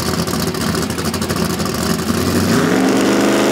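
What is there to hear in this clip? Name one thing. A drag racing car's engine revs roughly on the line.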